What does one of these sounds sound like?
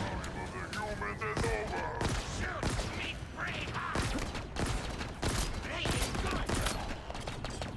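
Energy blasts crackle and zap.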